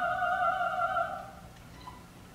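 A performer sings a long held note in a large hall.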